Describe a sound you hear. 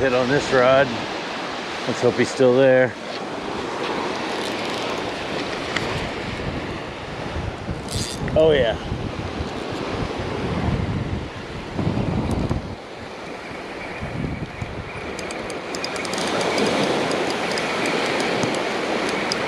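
Wind blows outdoors across the microphone.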